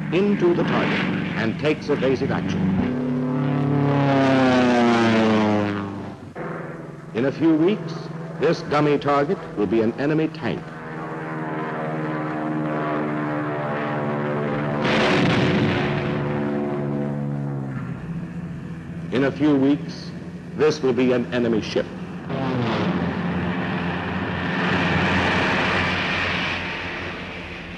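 An aircraft engine roars past overhead, its pitch dropping.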